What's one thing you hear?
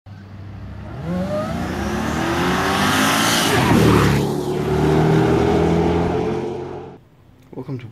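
A car engine revs hard as a car accelerates past and away.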